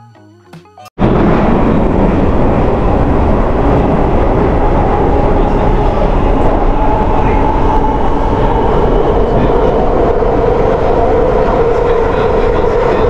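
An underground train rumbles and roars steadily along the track.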